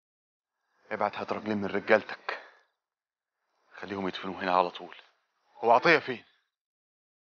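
A man speaks calmly in reply.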